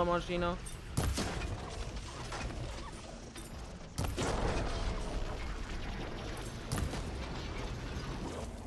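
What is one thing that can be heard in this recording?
Electric blasts crackle and burst with sharp bangs.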